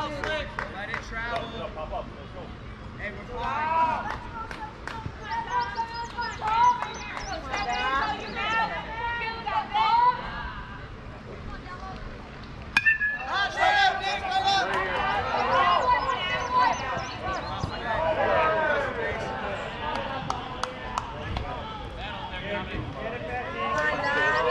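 Spectators shout and cheer nearby, loudly and excitedly.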